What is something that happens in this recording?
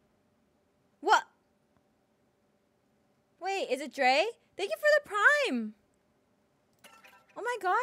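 A young woman speaks animatedly and close to a microphone, in short bursts.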